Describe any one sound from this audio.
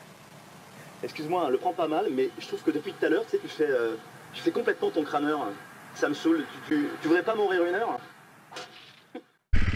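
A second man answers in a lively voice.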